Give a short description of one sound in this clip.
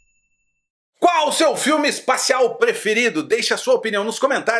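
A man talks animatedly and close to a microphone.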